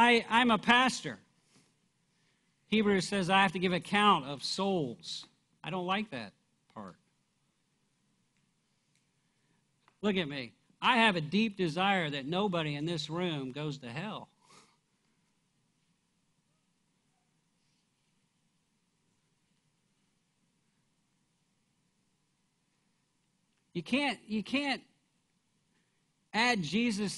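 A middle-aged man speaks with animation through a microphone, pausing often.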